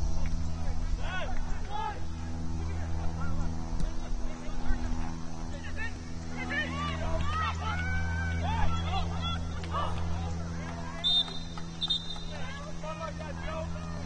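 Players shout to each other across an open field in the distance.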